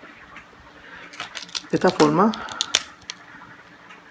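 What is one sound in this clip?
Crab shell cracks and snaps between fingers.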